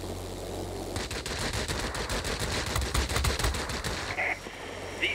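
Aircraft machine guns rattle in rapid bursts.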